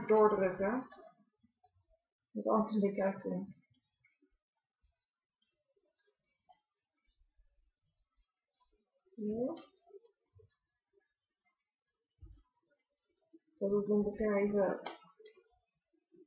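A young woman speaks calmly and softly, close to a microphone, in short bursts with pauses.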